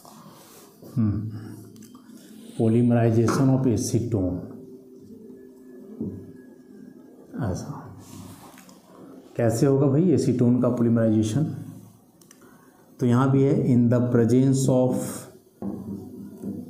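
A young man speaks calmly and clearly, as if teaching.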